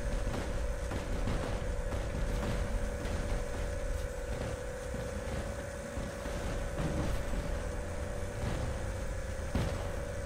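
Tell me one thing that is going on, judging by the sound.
A heavy machine rumbles steadily.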